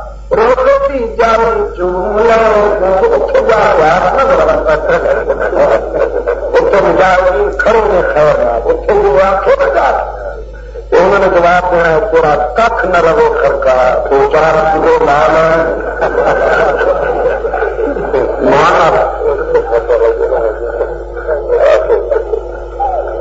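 A middle-aged man speaks calmly and steadily into a close microphone.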